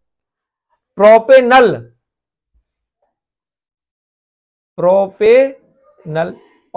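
A man speaks calmly, explaining, close by.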